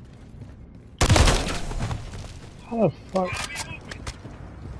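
Gunfire bursts loudly and rapidly.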